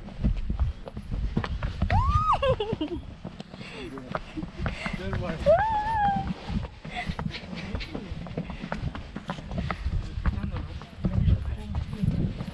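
A donkey's hooves clop and scrape on rocky steps.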